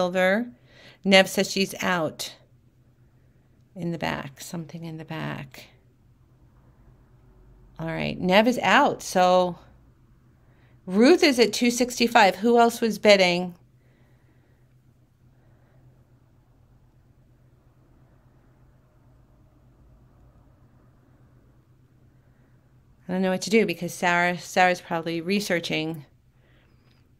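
A woman speaks calmly and clearly into a close microphone, in short bursts with pauses.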